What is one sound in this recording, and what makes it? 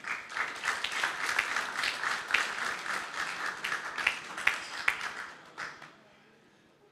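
A crowd of men and women pray aloud all at once.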